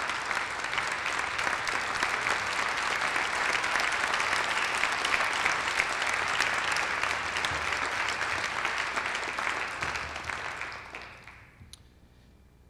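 An audience applauds in a large echoing hall, then the clapping fades away.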